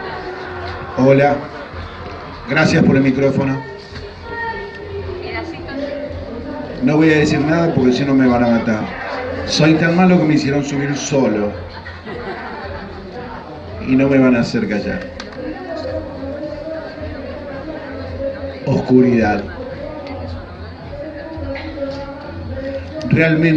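A man speaks into a microphone through a loudspeaker, reading out with pauses.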